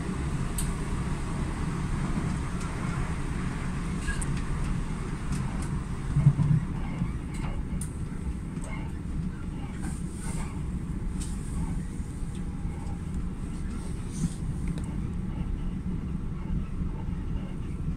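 Train wheels click and clatter on the rails.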